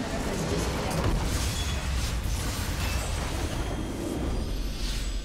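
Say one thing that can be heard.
A huge structure explodes with a deep rumbling roar.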